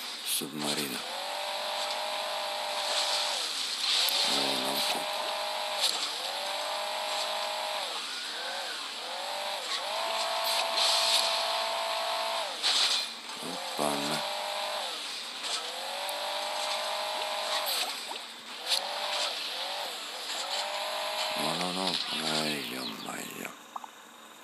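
A game engine revs up and down in bursts.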